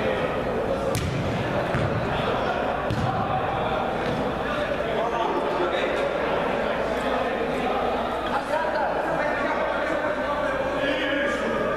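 A ball is kicked with dull thuds.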